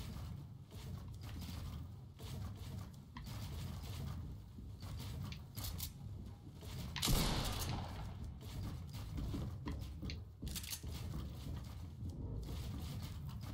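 Quick clicks and thuds of building pieces snapping into place sound from a video game.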